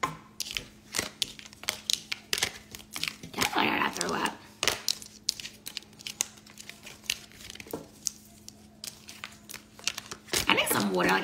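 Playing cards click and slap as they are shuffled.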